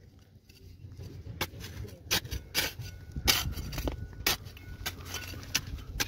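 A metal trowel scrapes through gravelly soil.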